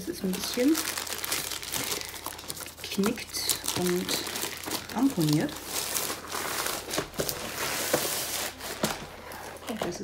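Plastic wrapping crinkles and rustles as hands fold it.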